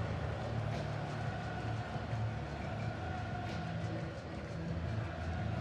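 A large stadium crowd chants and sings loudly.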